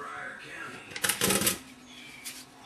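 A metal pot clanks onto a stovetop.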